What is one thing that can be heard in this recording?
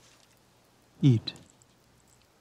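A man says a short word calmly, close by.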